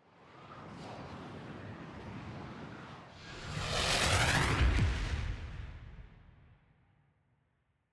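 A spacecraft engine whooshes past with a rising roar.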